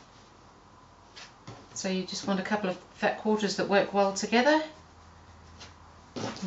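Fabric rustles softly as it is smoothed flat.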